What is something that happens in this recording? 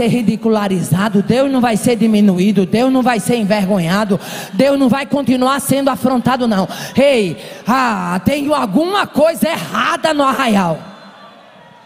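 A middle-aged woman preaches loudly and with passion through a microphone in a large hall.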